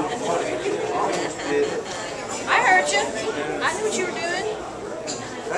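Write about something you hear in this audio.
A woman laughs loudly, close by.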